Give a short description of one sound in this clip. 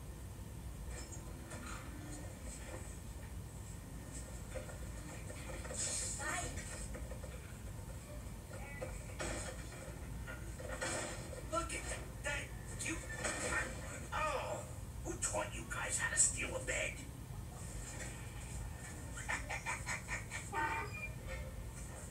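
A young woman speaks with animation through loudspeakers in a large room.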